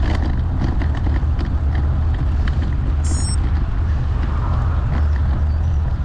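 A car drives past from the opposite direction.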